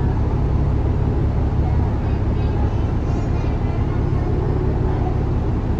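A bus engine idles with a low, steady rumble from inside the bus.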